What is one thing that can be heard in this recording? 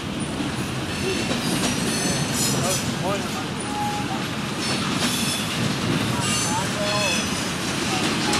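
Train wheels squeal on the rails now and then.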